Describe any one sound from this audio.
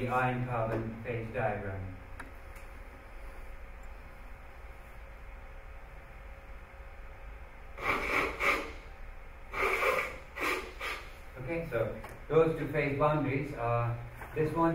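A man lectures calmly into a microphone in an echoing room.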